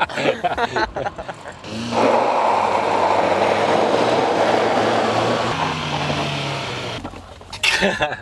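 A car engine revs hard.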